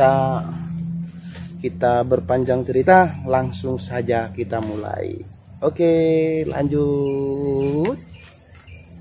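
A man speaks with animation close by, outdoors.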